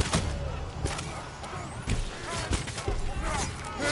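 Swords clash and clang in a close fight.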